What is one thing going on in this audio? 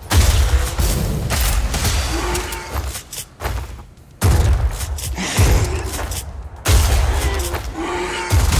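A shotgun fires with loud booming blasts.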